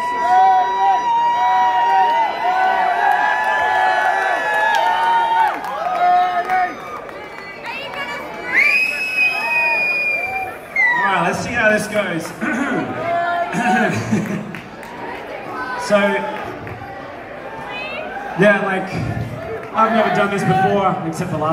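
An electric guitar plays through loudspeakers in a large hall.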